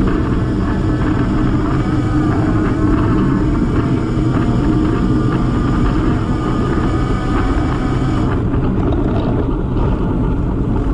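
Wind roars steadily against the microphone.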